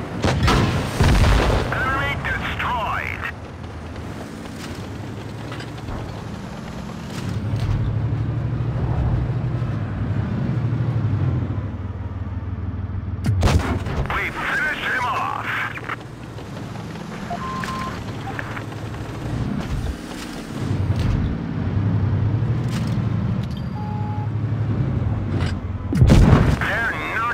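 Shells explode with sharp blasts.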